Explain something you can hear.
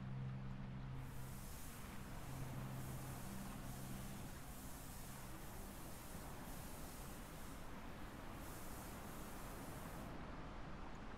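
Sand pours steadily from a bag onto the ground with a soft hiss.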